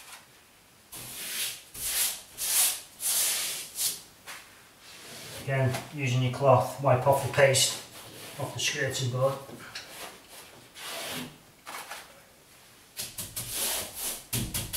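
A hand rubs over a wall.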